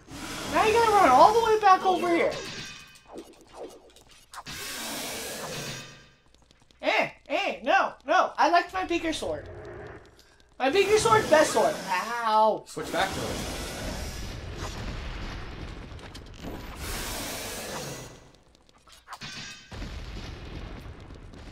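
A sword swishes and clangs in a fight.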